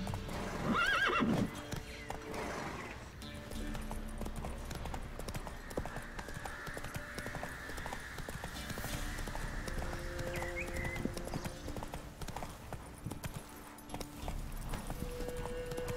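Horse hooves gallop on a dirt path.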